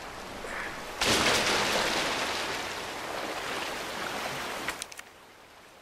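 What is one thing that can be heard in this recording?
Water rushes and splashes loudly nearby.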